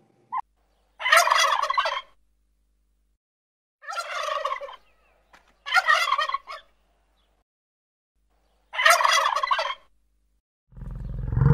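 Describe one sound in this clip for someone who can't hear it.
Turkeys gobble in short bursts.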